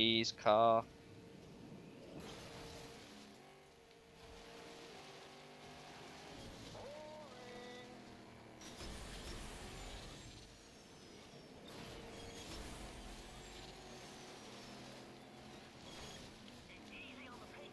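A race car engine roars and revs steadily.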